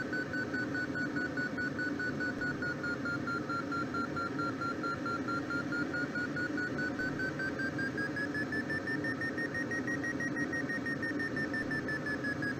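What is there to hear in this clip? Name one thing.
A glider's variometer beeps rapidly, its pitch dipping and then rising.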